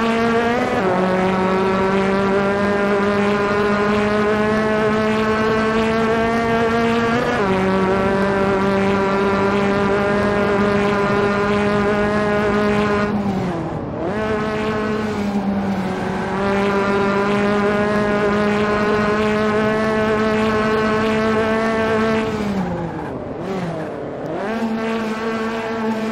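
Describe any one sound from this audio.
A racing car engine roars steadily at high revs, briefly dipping as it shifts gears.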